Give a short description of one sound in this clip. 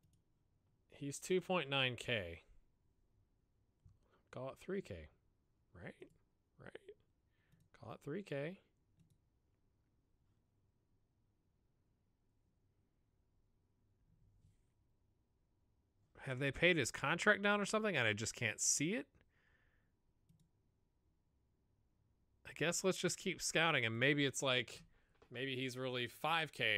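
A young man talks calmly into a close microphone, in bursts with pauses.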